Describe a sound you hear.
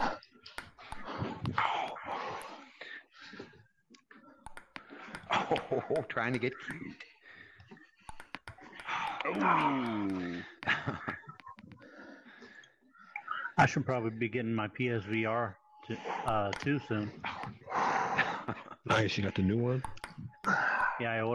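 A ping-pong ball taps back and forth in a quick rally.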